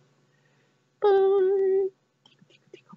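A young man holds a long, steady sung note.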